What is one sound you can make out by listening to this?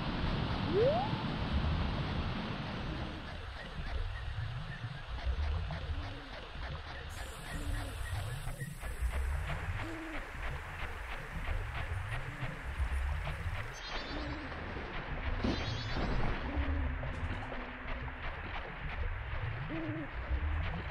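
Slow, pulsing video game music plays throughout.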